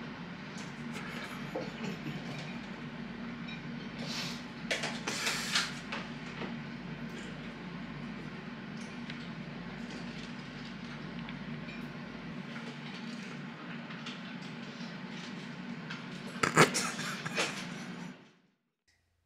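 An extractor fan hums steadily.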